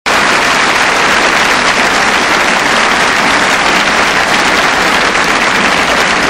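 A large crowd cheers and roars loudly in a big echoing hall.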